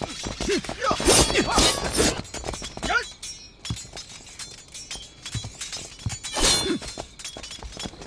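A sword is drawn with a metallic ring.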